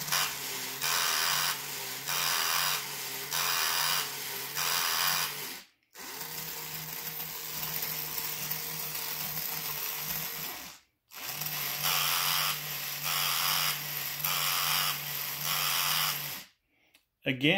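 A toy dog's motor whirs and buzzes in steady pulses.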